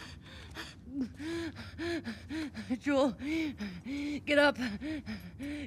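A young woman groans and gasps in pain.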